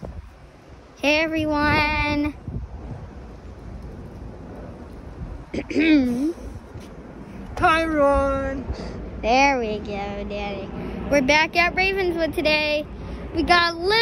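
A young child talks close up, with excitement.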